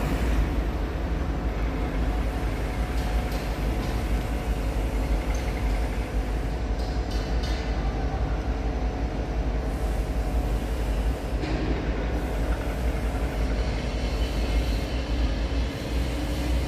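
Hydraulic machinery hums steadily nearby.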